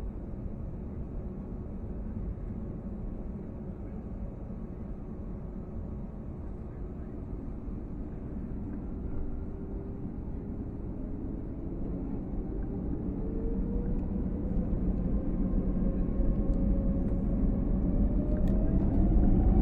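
Jet engines roar steadily from inside an aircraft cabin and rise in pitch as the plane speeds up.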